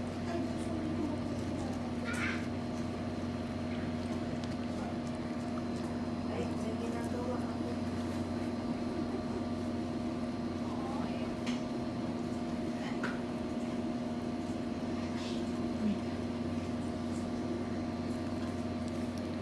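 A small dog licks and chews at a cake.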